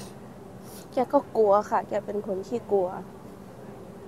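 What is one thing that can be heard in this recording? A woman speaks quietly and emotionally close to a microphone.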